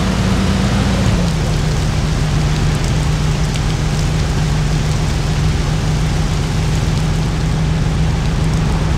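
An old car engine hums steadily while driving.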